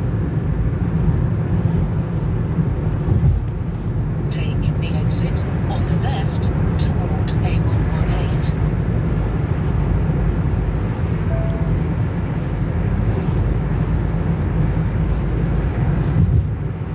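A car engine hums steadily from inside.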